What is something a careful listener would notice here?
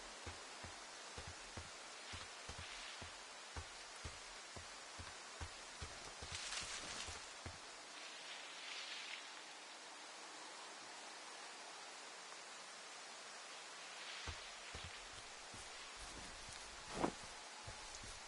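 Footsteps crunch steadily on dry ground.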